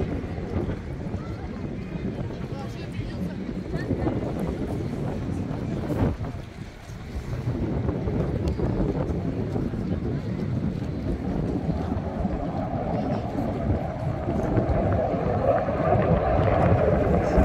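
Wind blows hard across open water outdoors.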